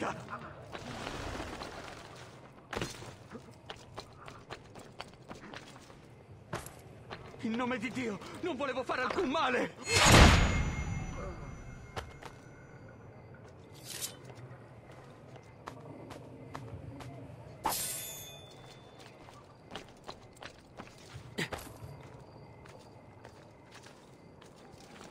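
Quick footsteps patter across roof tiles.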